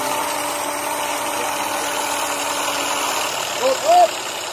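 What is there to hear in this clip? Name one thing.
A vehicle engine idles steadily.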